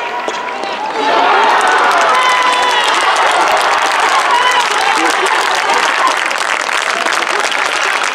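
A crowd claps rapidly.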